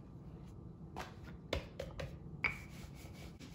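Dough is dropped and patted down on a wooden board with soft thumps.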